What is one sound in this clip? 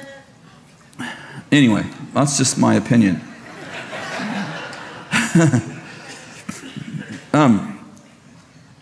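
A middle-aged man speaks with emotion through a microphone.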